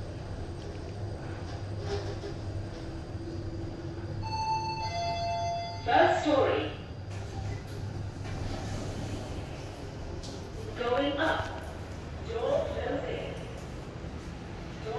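An elevator hums steadily.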